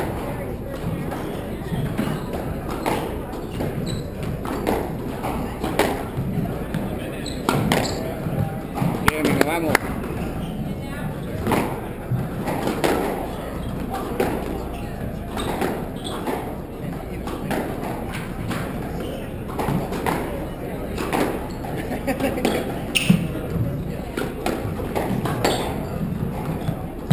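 Rackets strike a squash ball with sharp cracks.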